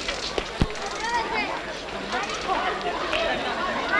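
A bicycle rolls to a stop.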